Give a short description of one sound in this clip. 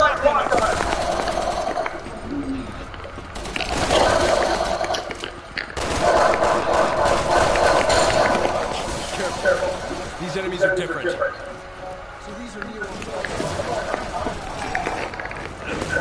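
Heavy boots run on a metal floor.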